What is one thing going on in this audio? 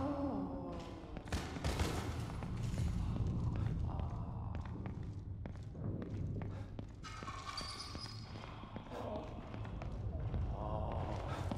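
Footsteps thud on a hard floor at a steady pace.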